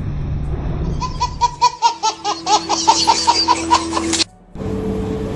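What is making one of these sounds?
A baby laughs loudly in bursts.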